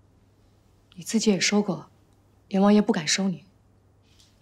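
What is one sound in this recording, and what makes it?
A woman speaks firmly close by.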